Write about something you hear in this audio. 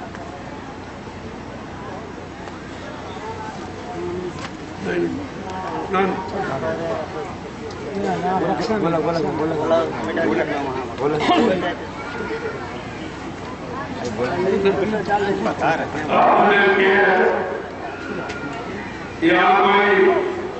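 A man speaks into a microphone, heard through loudspeakers.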